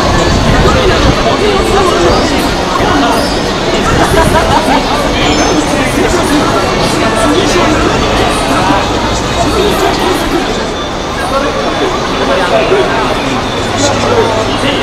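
Cars and taxis drive past close by on a busy street.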